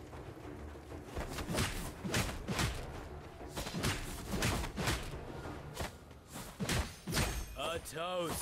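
Sword blows strike in quick bursts.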